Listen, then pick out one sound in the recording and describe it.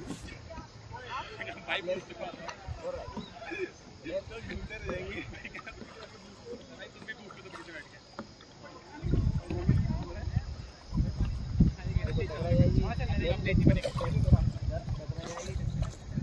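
Kayak paddles dip and splash in the water.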